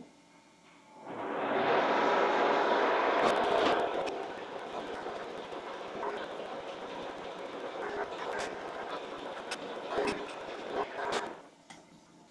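A milling machine whirs steadily and then winds down.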